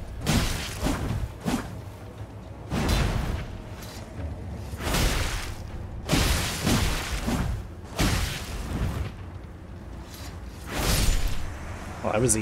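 Swords swing and clash sharply.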